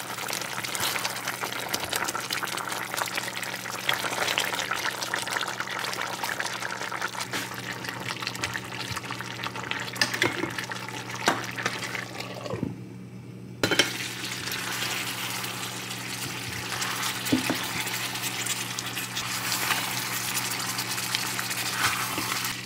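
A spatula scrapes and stirs a thick stew in a pot.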